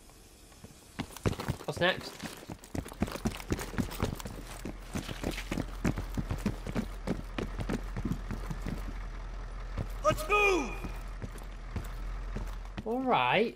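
Footsteps hurry over hard ground.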